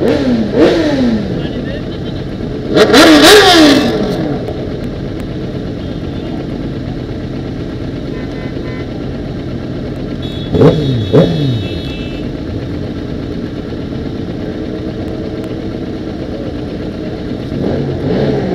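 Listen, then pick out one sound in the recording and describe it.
Motorcycle engines idle with a low rumble nearby.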